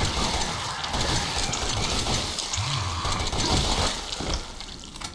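Gunshots ring out loudly in quick succession.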